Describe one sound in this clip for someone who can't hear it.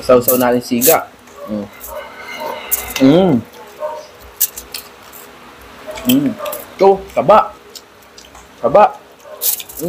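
Food crunches and crackles as it is handled.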